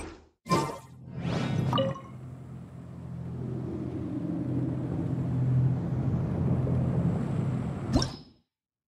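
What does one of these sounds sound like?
A magical whooshing hum swells and rumbles, then cuts off.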